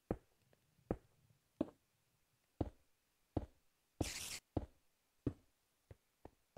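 Footsteps tap on hard stone at a steady walking pace.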